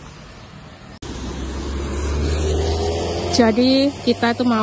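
A car drives past close by on a wet road.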